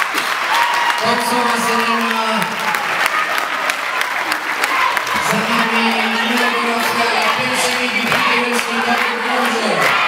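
A group of young women chant together loudly.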